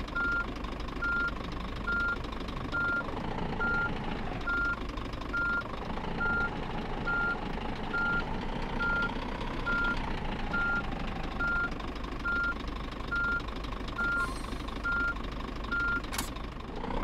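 A truck's reversing alarm beeps.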